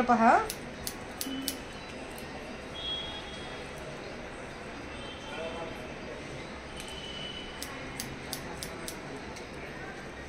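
Scissors snip crisply through hair, close by.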